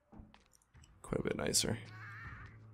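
A fridge door opens.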